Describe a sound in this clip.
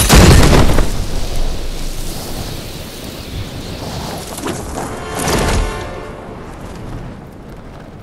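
Wind rushes loudly during a fast freefall and gradually fades.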